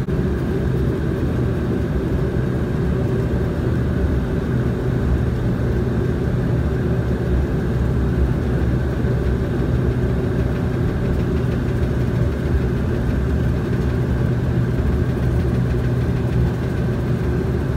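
Aircraft wheels rumble on the runway.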